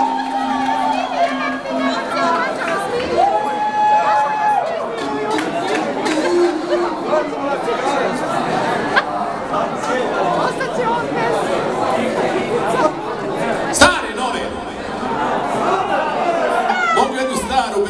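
A crowd chatters loudly in an echoing room.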